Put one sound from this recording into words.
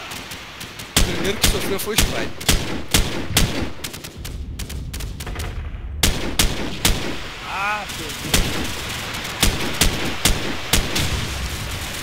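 A rifle fires loud, sharp shots in quick bursts.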